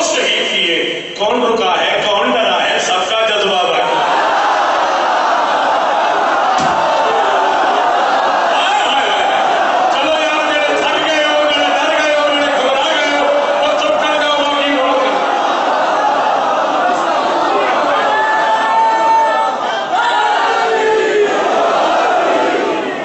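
A man chants loudly into a microphone through loudspeakers in an echoing hall.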